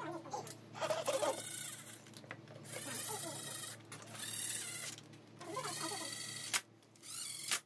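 A cordless power drill whirs in short bursts.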